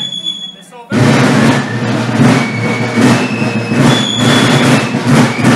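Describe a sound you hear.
A brass band plays a lively march with drums.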